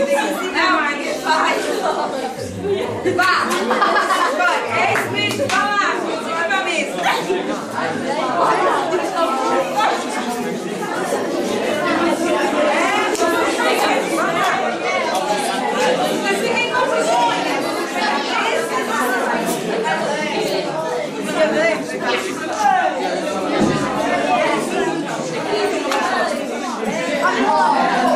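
A crowd of teenagers chatters and laughs nearby.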